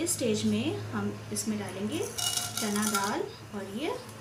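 Dry lentils patter into a pan of hot oil.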